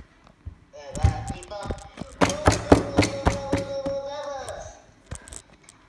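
Toys clatter and knock as a hand handles them.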